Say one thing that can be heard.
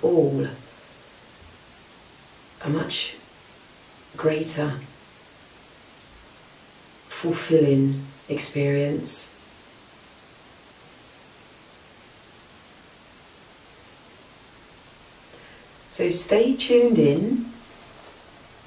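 A woman speaks calmly and slowly close to a microphone, with long pauses.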